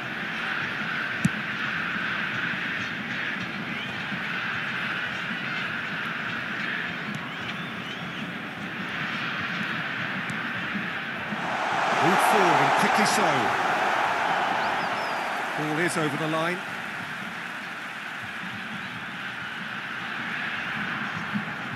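A stadium crowd roars steadily, swelling loudly for a few seconds.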